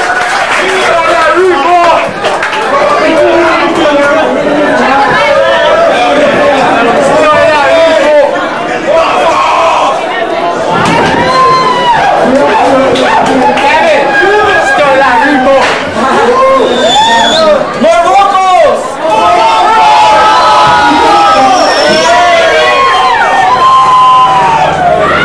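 A man shouts and sings through a loudspeaker.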